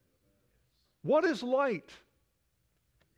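An elderly man speaks through a microphone in a large hall, with long pauses.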